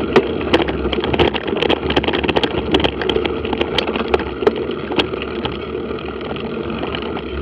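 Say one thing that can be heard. Tyres crunch and rattle over a dirt track.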